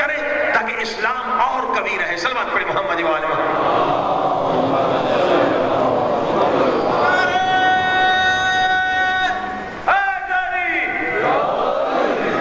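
A middle-aged man preaches with passion through a microphone, stretching some words into a long chant.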